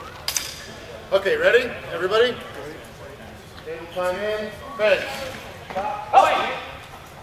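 An adult man calls out loudly.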